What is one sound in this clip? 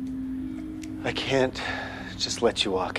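An older man speaks in a low, rough voice, close by.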